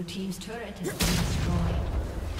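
A stone tower collapses with a loud rumbling crash.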